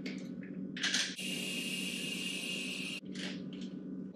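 Water runs from a kitchen tap.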